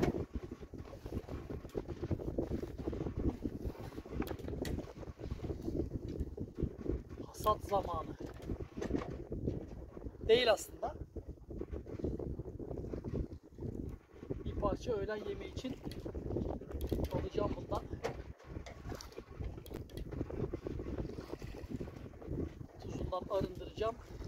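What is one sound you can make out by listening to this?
Water rushes and splashes along a sailing boat's hull.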